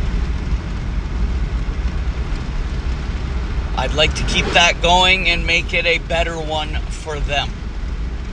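A car engine rumbles low and steadily from inside the car.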